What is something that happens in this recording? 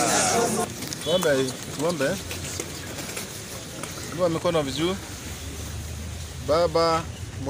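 A middle-aged man speaks loudly and with animation to a crowd.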